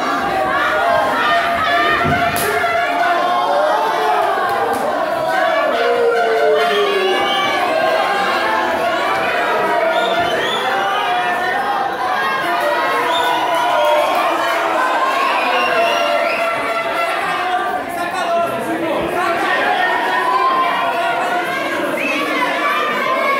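A crowd shouts and cheers loudly throughout, in a large echoing hall.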